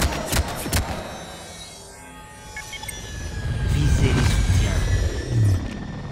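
Electricity crackles and hums.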